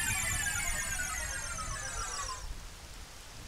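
A magical chime twinkles and falls in pitch.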